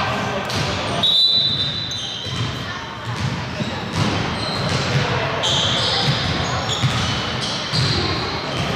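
Shoes squeak faintly on a court floor in a large echoing hall.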